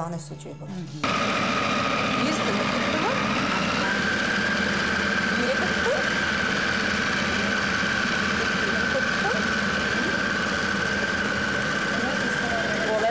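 A food processor motor whirs steadily.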